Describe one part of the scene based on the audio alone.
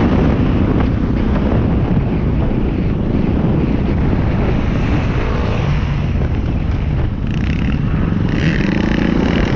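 A motorcycle engine roars close by as it rides.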